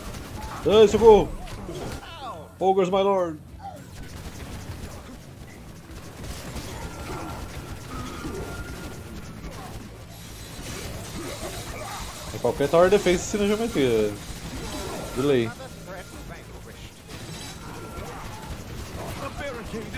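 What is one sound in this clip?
Game combat sounds clash and crackle steadily.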